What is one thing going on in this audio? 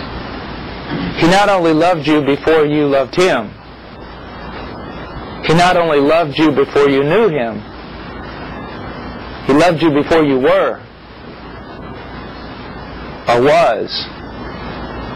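A middle-aged man speaks with animation into a clip-on microphone, in short bursts with pauses.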